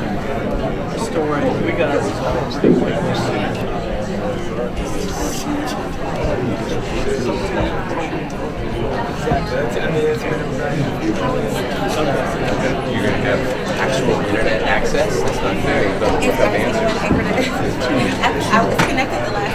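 Several men and women talk and murmur at once in a room with some echo.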